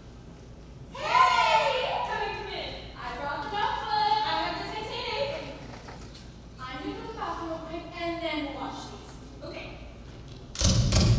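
A young woman speaks with animation through a microphone in a large hall.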